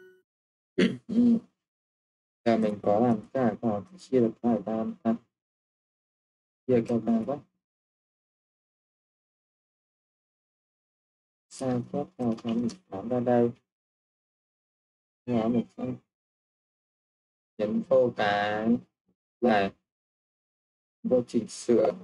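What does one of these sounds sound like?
A young man speaks calmly and close to a microphone, in short phrases with pauses.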